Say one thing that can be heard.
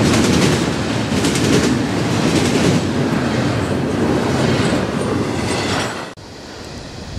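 A freight train rumbles and clatters past close by.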